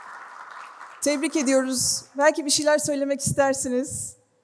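A woman speaks through a loudspeaker in a large hall.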